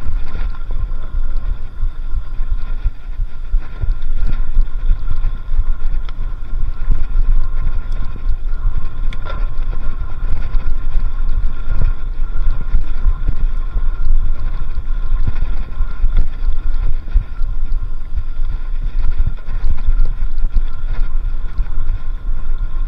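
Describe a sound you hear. Wind rumbles and buffets loudly against a microphone.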